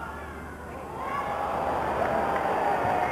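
A crowd cheers loudly and the cheering swells.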